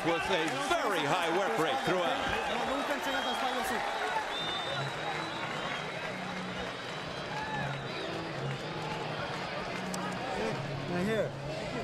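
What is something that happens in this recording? A large crowd cheers and roars in a big echoing arena.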